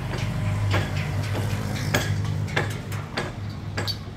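A motorcycle engine rumbles as it passes by below.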